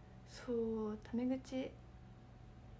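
A young woman speaks briefly and softly, close to a microphone.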